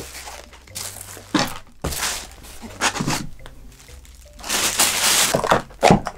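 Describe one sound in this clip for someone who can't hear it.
Plastic food containers click and tap on a table.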